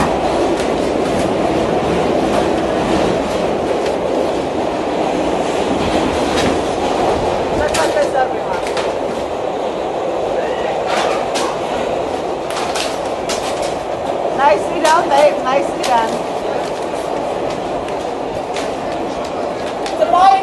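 Paper posters rip and crinkle as a woman tears them down.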